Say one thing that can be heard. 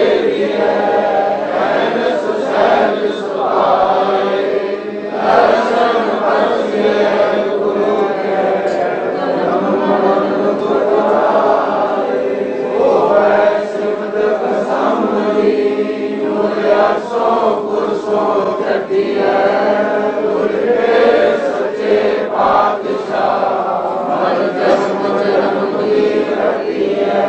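An elderly man chants a recitation steadily, heard through a microphone.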